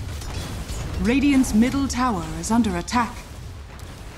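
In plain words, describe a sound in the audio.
A woman speaks close to a microphone.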